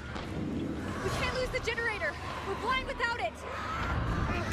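A woman shouts urgently nearby.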